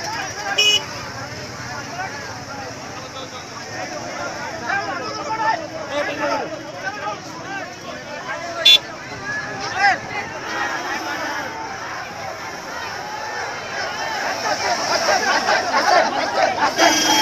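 A large crowd of men chatters and shouts outdoors.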